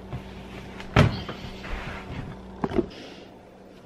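Footsteps thud on a hard floor close by.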